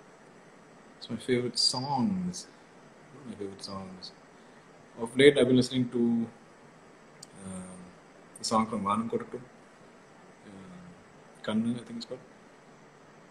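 A man speaks calmly and thoughtfully close to a microphone, in short bursts with pauses.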